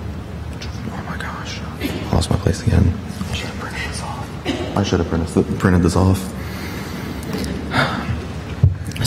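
A young man speaks calmly into a microphone in a large echoing room.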